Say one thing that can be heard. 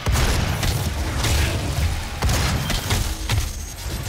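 A monster's body bursts with a wet, gory splatter.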